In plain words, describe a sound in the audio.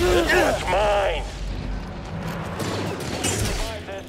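Blaster guns fire sharp zapping shots.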